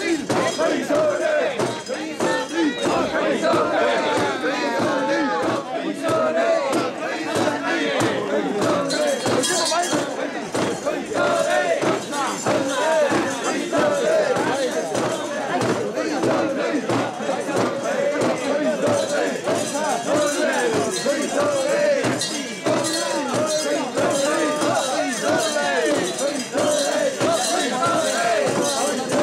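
Bells on a portable shrine jingle as it is carried.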